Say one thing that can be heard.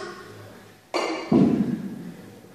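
Kettlebells thud heavily onto a hard floor in an echoing room.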